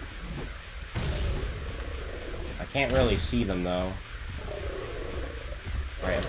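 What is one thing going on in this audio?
A sword swooshes through the air with a sharp whoosh.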